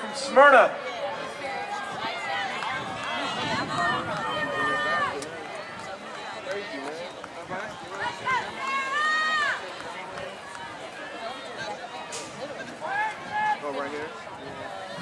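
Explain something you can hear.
Spectators shout and cheer encouragement outdoors.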